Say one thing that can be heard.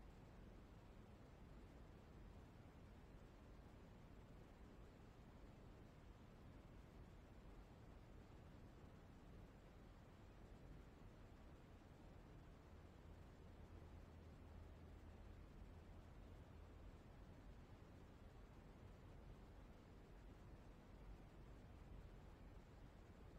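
Wind blows softly outdoors.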